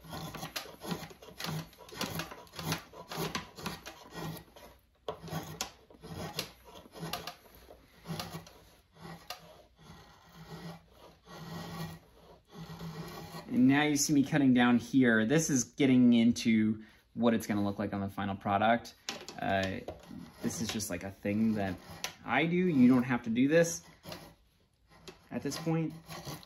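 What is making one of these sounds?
A drawknife shaves wood in quick, repeated scraping strokes.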